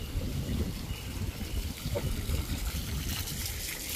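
A fountain splashes and trickles nearby.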